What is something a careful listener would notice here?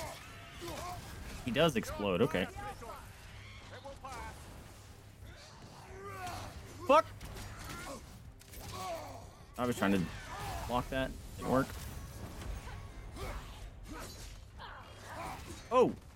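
Weapons clash and thud in a game fight.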